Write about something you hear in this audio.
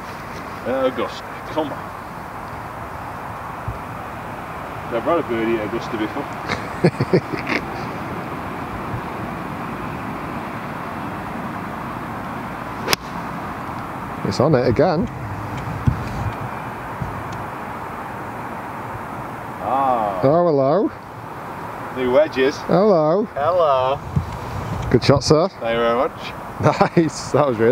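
A man talks calmly outdoors, close by.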